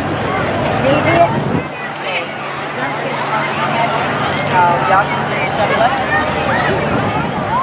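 A crowd chatters outdoors along a street.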